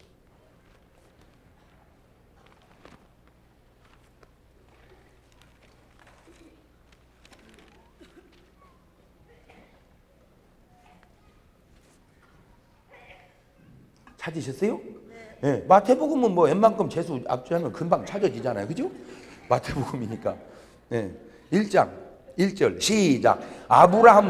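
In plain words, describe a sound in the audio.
A middle-aged man speaks with animation into a microphone in a large echoing hall.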